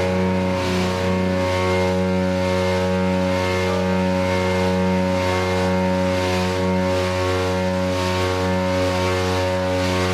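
A loud electric bass plays a driving line, heard live in a room.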